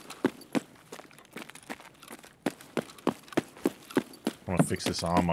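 Footsteps crunch steadily over a gritty, debris-strewn floor.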